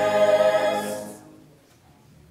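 A choir sings a final chord that rings out and fades in an echoing hall.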